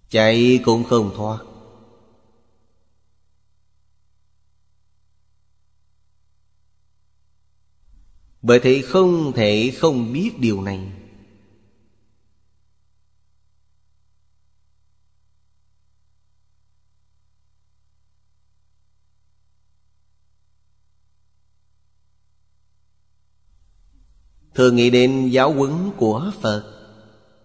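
An elderly man speaks calmly into a close microphone, pausing at length between phrases.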